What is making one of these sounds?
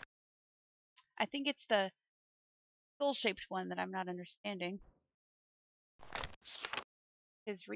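A young woman talks animatedly into a close microphone.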